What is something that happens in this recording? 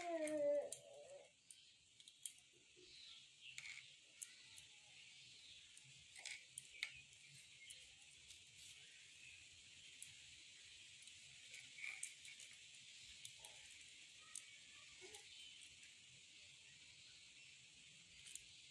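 Hands rub softly on a small child's bare skin.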